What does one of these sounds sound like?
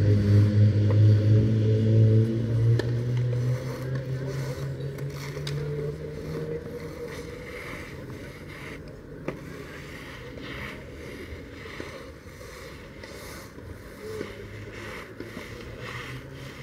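A brush sweeps and scrapes across a clay court.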